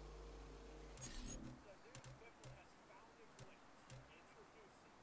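Building pieces snap into place with sharp clicks.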